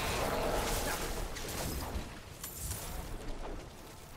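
Energy whooshes and hums around a magic shield.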